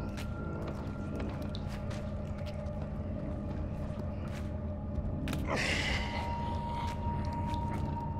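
Small footsteps patter softly across a tiled floor.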